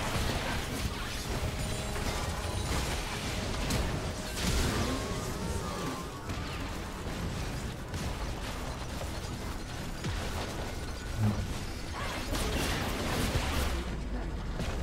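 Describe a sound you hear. Game sound effects of spells and hits clash and burst.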